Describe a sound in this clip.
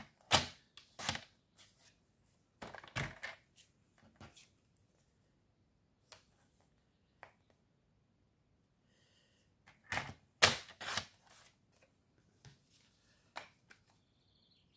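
Card stock rustles and taps against a paper trimmer.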